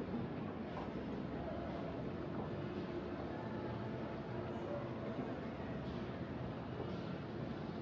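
An escalator hums and rumbles steadily.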